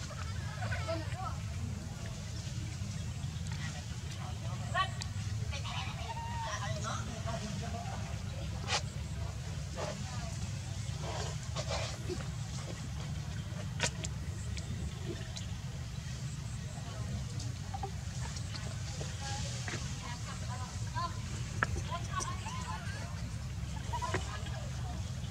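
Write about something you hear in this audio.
A baby monkey squeaks softly now and then.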